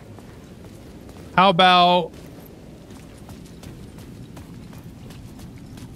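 Footsteps tread on wet, littered pavement.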